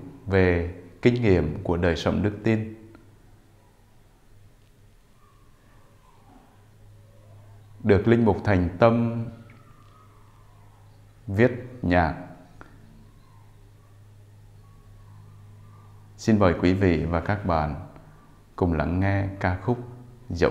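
A man speaks slowly and clearly into a microphone, in short phrases with pauses.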